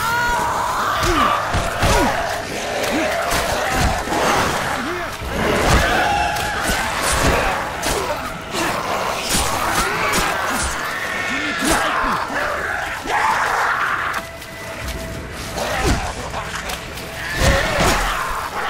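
Blows thud and smack in a fight.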